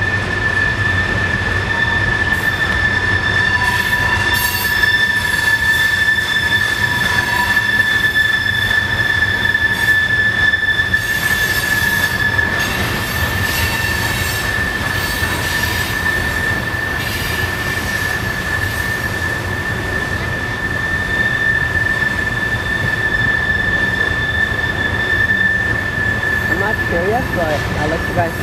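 Train wheels squeal steadily against the rails.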